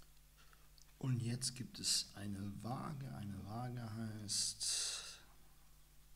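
A young man reads aloud calmly into a nearby microphone.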